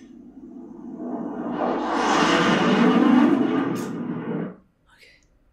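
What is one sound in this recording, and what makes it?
A young woman gasps loudly in shock.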